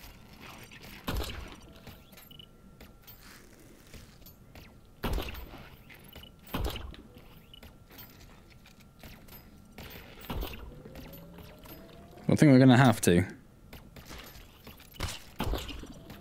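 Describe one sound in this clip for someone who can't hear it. A grappling gun fires with sharp whooshing bursts.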